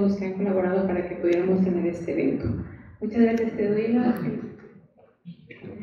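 A woman speaks into a microphone in an echoing hall.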